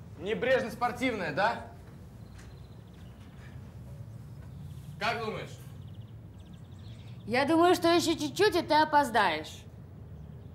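A young woman speaks with animation close by.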